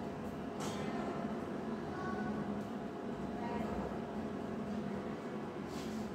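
Footsteps shuffle across a hard floor.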